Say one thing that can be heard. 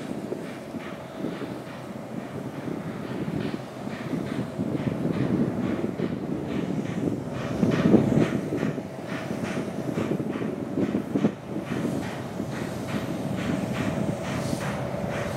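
A steam locomotive's wheels rumble on the rails.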